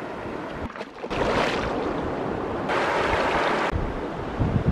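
Water splashes loudly as a fish thrashes.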